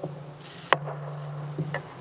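A gavel knocks once on a wooden block.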